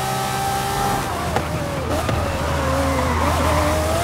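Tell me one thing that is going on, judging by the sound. A V12 sports car engine drops in pitch as the car slows for a bend.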